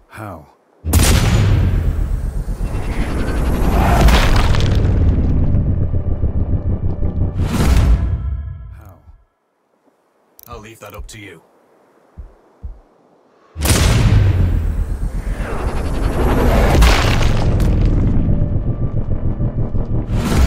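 A bullet whooshes through the air.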